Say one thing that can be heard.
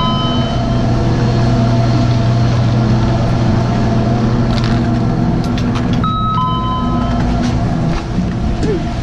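A chairlift's machinery hums steadily nearby.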